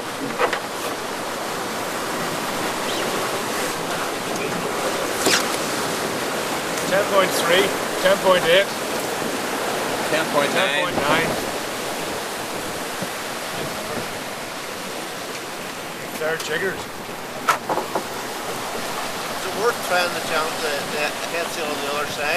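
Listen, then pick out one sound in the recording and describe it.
Strong wind roars across the microphone outdoors.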